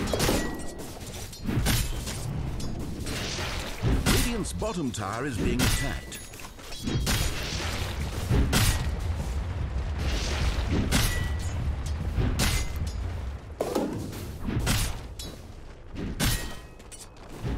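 Game combat sound effects clash and burst in quick succession.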